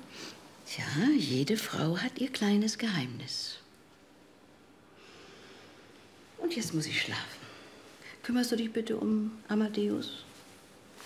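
An elderly woman speaks softly and close by.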